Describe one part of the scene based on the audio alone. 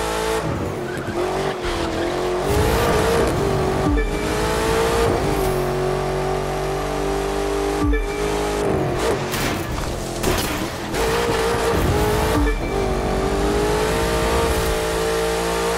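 A sports car engine roars at high revs, dropping briefly with each gear change and climbing again.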